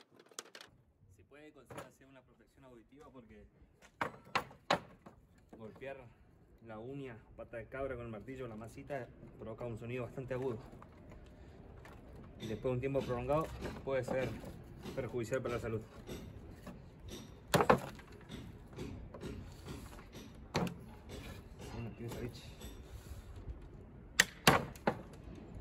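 Metal tools knock and clank against wooden boards.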